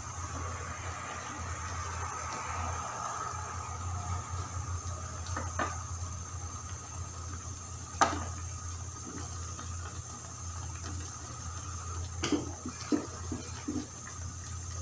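Vegetables drop into a frying pan with soft thuds.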